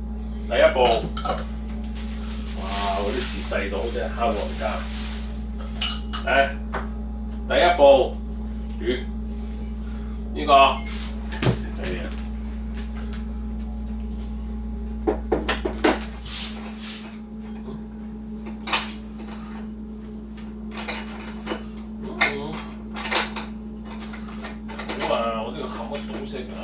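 A man handles small items at a table with light clicks and rustles.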